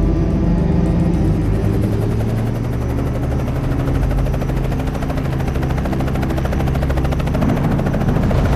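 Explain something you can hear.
A helicopter's rotor beats rapidly and steadily.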